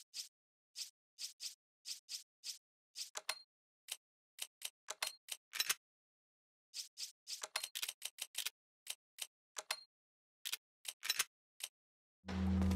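Short sharp menu clicks tick in quick succession.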